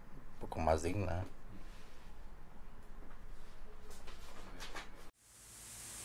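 A man speaks calmly and close by.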